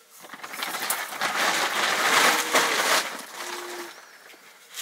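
A plastic bag rustles and crinkles loudly.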